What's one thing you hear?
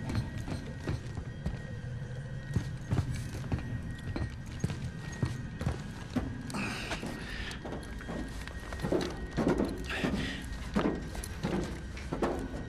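Heavy footsteps thud on a metal floor.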